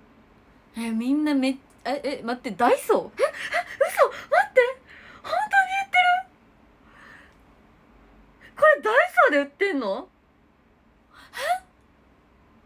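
A young woman talks excitedly close to a microphone.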